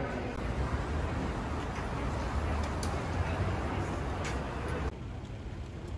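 A bicycle rattles as it is wheeled.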